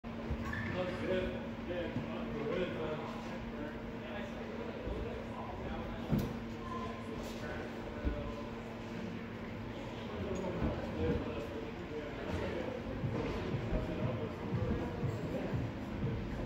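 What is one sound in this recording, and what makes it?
Climbing shoes and hands knock and scuff against climbing holds in a large echoing hall.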